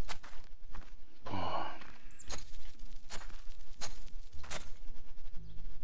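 A rake scrapes through loose soil.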